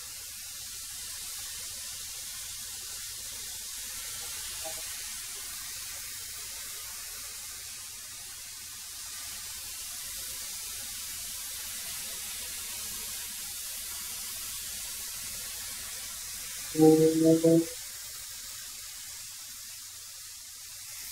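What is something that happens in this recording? A thickness planer whirs steadily as boards feed through it.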